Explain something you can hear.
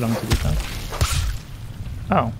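Heavy thuds sound as a giant spider's leg stabs into the ground.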